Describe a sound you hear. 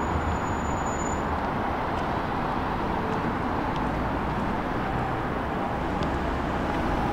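City traffic hums steadily in the distance.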